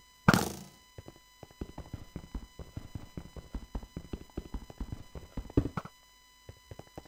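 Rapid soft tapping sounds as a block is dug out in a video game.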